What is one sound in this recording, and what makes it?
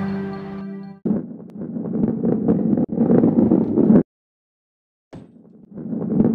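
A ball rolls along a track with a low rumble.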